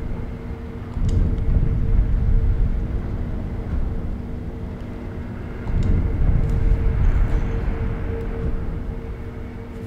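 A deep, rumbling magical whoosh swells and slowly fades.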